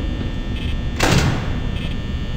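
A burst of static hisses briefly.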